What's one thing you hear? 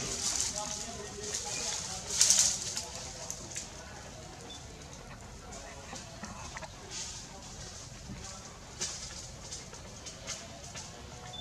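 Dry leaves rustle and crackle as a small monkey moves about.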